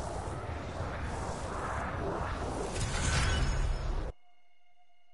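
Jet thrusters roar loudly.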